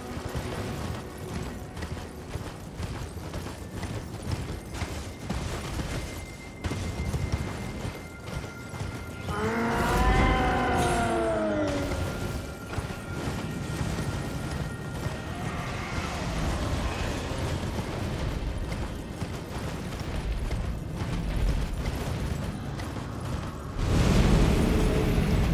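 Wind howls outdoors in a snowstorm.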